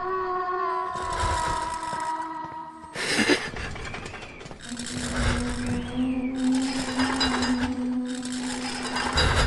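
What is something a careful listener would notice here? Footsteps run quickly across a wooden floor.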